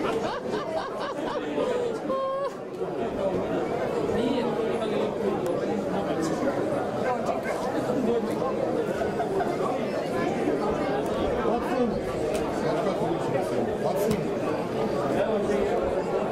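A crowd of people murmurs and chatters in the distance outdoors.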